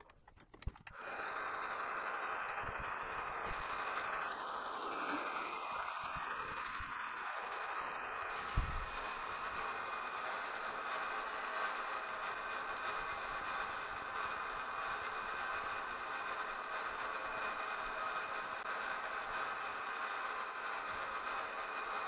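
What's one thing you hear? A lathe spins up and runs with a steady whirring hum.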